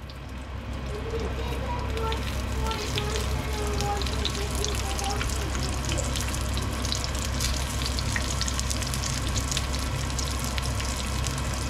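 Tongs clink against a frying pan.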